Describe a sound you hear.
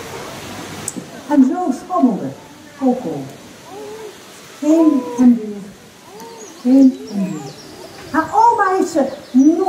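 A woman speaks clearly and expressively through a loudspeaker in the open air.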